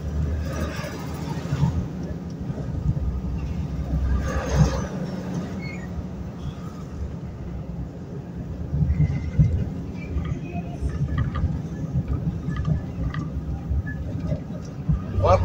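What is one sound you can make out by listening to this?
A car's engine hums steadily with road rumble from inside the car.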